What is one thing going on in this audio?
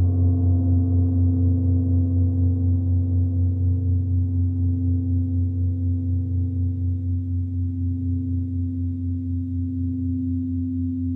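A singing bowl rings with a steady, gently pulsing hum.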